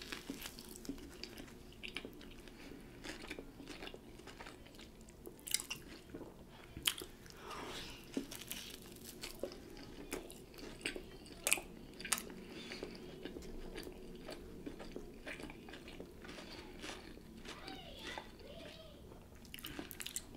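Crusty sandwich bread crackles as a woman tears it by hand close to a microphone.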